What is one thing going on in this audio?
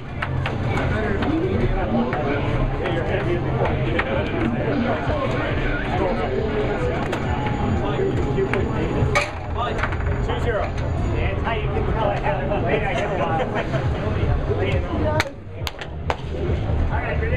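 An air hockey puck clacks sharply against paddles and rails.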